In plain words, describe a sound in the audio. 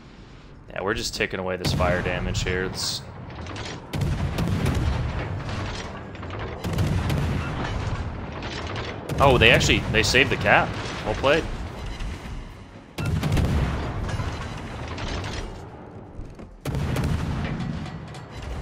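Heavy naval guns fire in deep, booming blasts.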